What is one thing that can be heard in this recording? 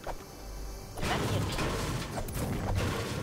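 A pickaxe strikes metal repeatedly.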